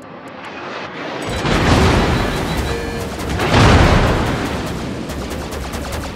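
Shells splash loudly into the water around a ship.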